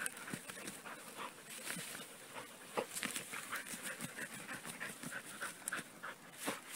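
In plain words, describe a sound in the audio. A dog pants and sniffs.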